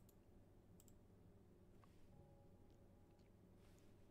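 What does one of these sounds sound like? A menu closes with a soft click.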